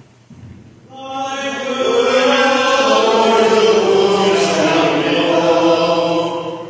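Several people sing together in a large echoing hall.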